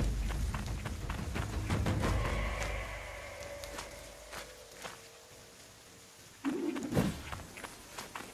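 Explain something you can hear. Footsteps squelch through wet, muddy ground.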